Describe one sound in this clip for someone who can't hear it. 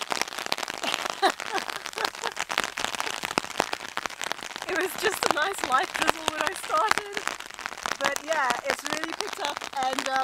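A woman talks and laughs cheerfully close by.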